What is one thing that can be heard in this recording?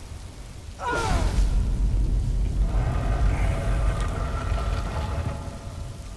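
A heavy stone gate rumbles and grinds open.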